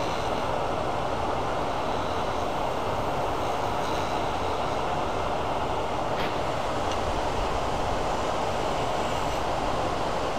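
A tool scrapes against a spinning metal shaft.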